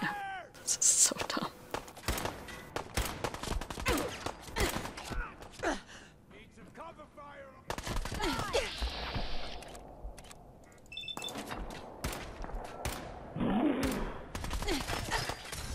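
Gunshots fire in quick bursts with sharp echoing cracks.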